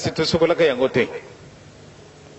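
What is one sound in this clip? A man speaks loudly into a microphone with animation.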